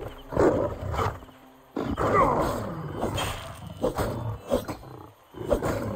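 A sword swings and strikes with heavy thuds.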